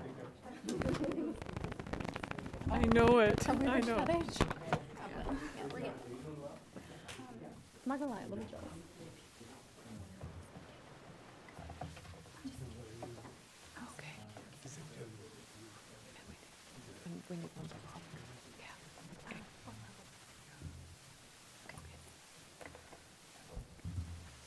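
Several adults talk and murmur in a large room with a slight echo.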